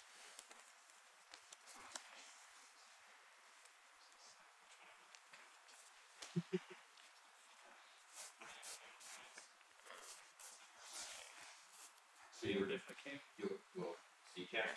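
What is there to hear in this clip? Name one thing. Playing cards slide and tap softly on a cloth mat.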